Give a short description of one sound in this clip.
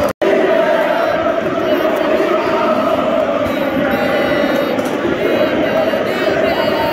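A large stadium crowd sings and chants loudly in unison.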